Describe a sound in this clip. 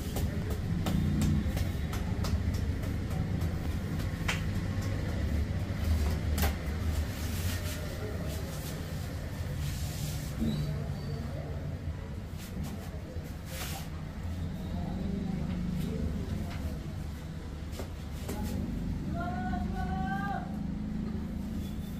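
Hands rub and scratch through hair close by.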